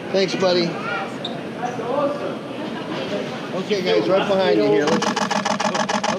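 Several men call out and talk excitedly close by.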